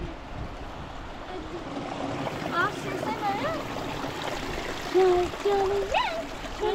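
A river rushes steadily in the background.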